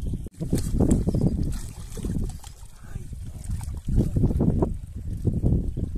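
Water splashes and sloshes as a heavy sack is dunked in a stream.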